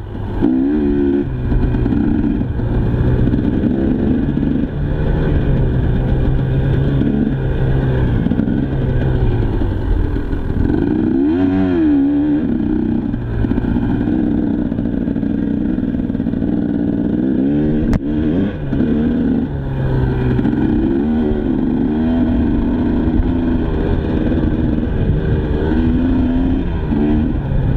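A dirt bike engine roars close by, revving up and down as it accelerates and shifts.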